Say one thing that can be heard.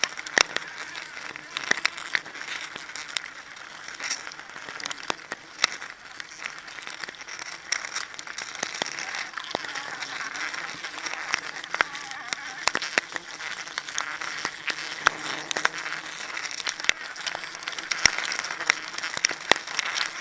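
Metal climbing spikes knock and scrape against tree bark.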